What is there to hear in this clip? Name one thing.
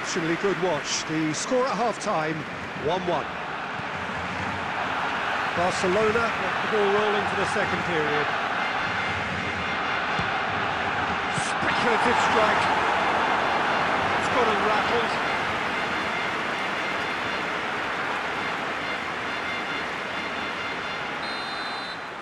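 A large stadium crowd roars steadily.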